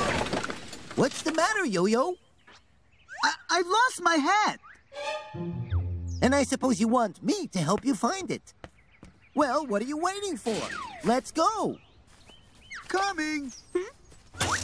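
A man speaks in a high, cartoonish voice with animation.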